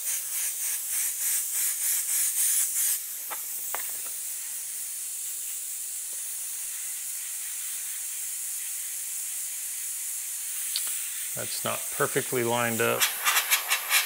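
An airbrush hisses steadily as it sprays.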